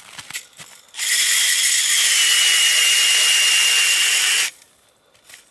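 A cordless drill whirs, turning an ice auger that bores into ice.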